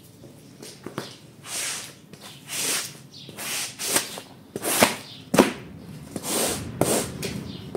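A rubber squeegee swishes and squelches water out of a soaked mat.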